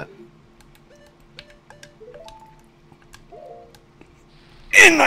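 Short electronic menu blips chime one after another.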